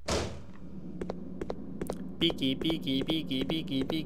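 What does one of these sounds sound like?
Footsteps clang on a metal floor.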